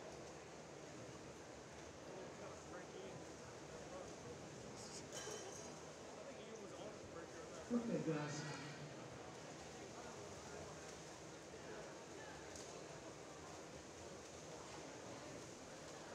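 A crowd murmurs in the echoing hall.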